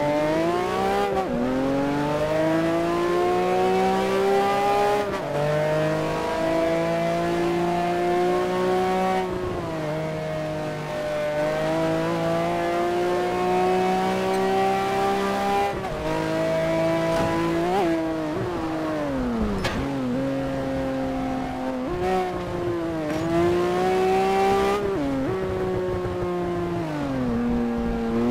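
A race car engine roars loudly, rising in pitch and dropping sharply as the gears shift.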